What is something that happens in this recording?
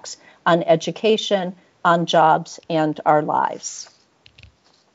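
A woman speaks briefly over an online call, then falls silent.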